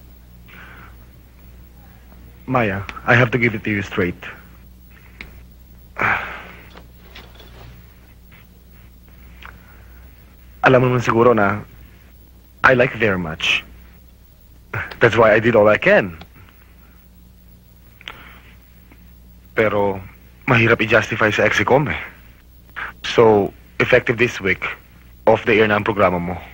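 A woman speaks quietly, close by.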